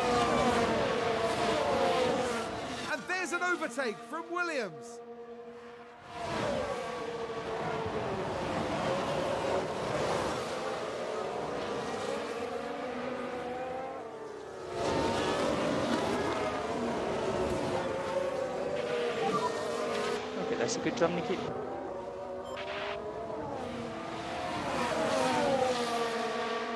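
Racing car engines whine at high pitch as cars speed past.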